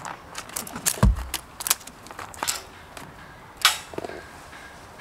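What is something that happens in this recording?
Gloves rustle and flap as they are pulled off.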